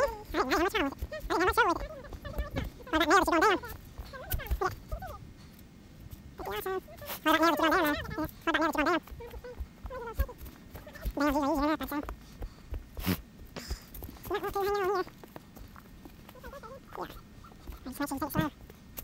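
Footsteps crunch and rustle through dry leaves.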